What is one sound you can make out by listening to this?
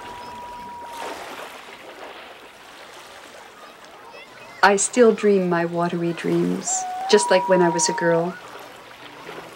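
Small waves lap gently against a shore.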